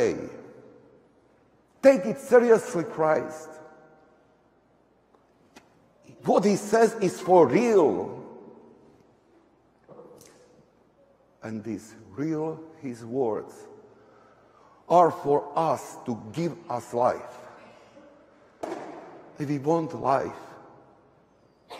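A man chants in bursts into a microphone, echoing in a large hall.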